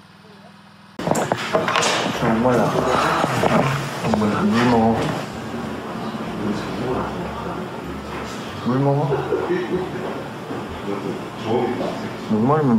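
Young men talk and laugh casually close by.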